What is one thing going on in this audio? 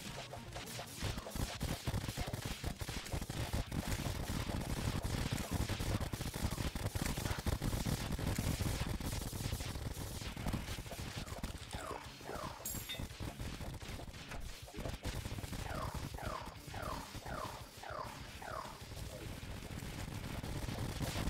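Electronic game battle effects crackle and thump rapidly.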